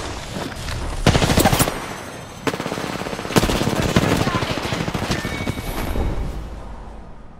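Gunshots crack nearby in quick bursts.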